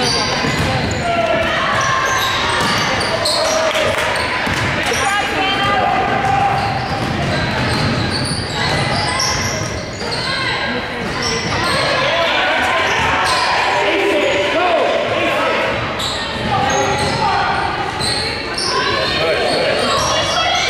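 Sneakers squeak on a hardwood court in a large echoing gym.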